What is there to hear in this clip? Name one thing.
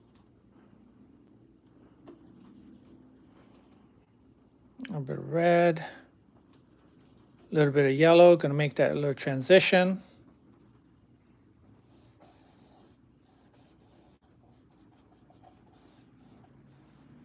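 A paintbrush softly swishes and dabs through thick paint.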